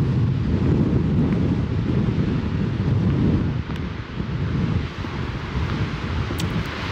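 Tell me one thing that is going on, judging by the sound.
Waves crash and roar against rocks in the distance.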